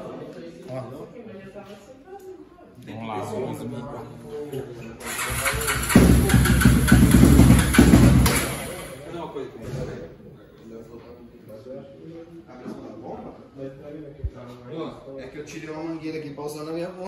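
Several men talk with each other nearby.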